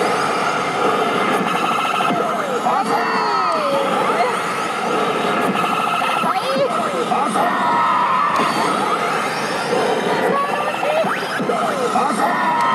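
A slot machine plays loud electronic jingles and beeps.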